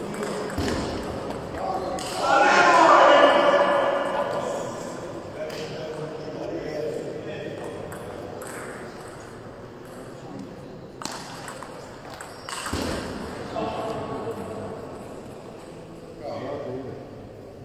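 A ping-pong ball clicks back and forth between paddles and a table in an echoing hall.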